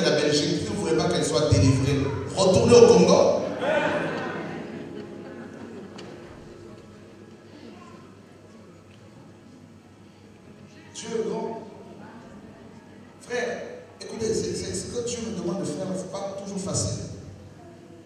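A man speaks with animation into a microphone, his voice echoing in a large hall.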